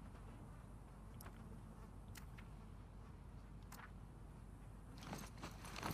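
A soft click sounds as a menu option changes.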